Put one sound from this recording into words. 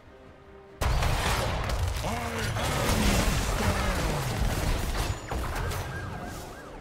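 Fantasy video game combat effects crash and whoosh.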